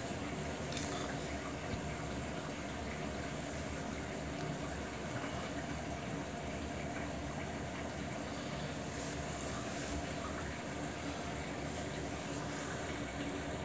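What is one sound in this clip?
A front-loading washing machine hums as it turns its drum.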